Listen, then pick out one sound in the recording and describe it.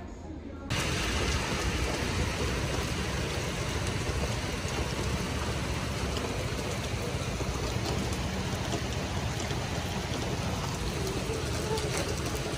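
Heavy rain pours steadily onto wet pavement outdoors.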